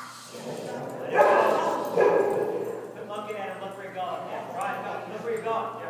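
A man calls out commands to a dog.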